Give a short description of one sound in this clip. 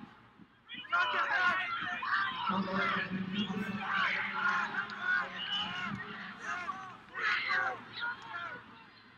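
A man shouts instructions loudly from close by.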